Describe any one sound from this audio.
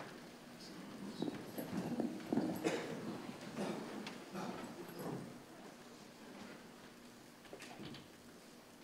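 An elderly man begins speaking quietly through a microphone.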